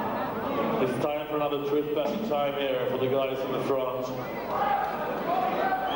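A man speaks hoarsely into a microphone, heard through loudspeakers.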